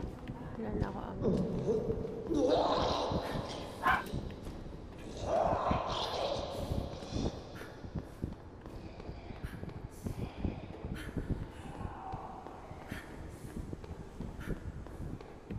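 High heels click on a hard floor at a steady walking pace.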